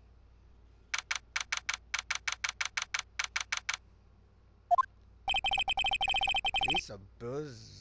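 Rapid electronic blips tick in an even rhythm.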